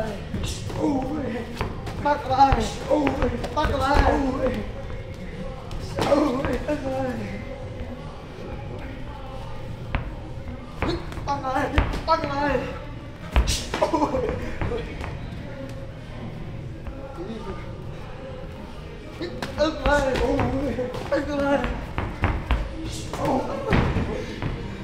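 Kicks thud against pads.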